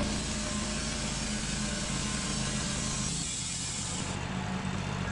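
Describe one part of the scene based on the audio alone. A band saw cuts through a large log with a loud, harsh whine.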